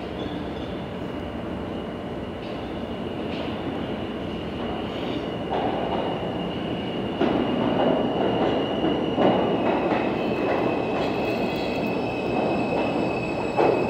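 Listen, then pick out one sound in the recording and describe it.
Train wheels squeal with a high, steady screech on the rails.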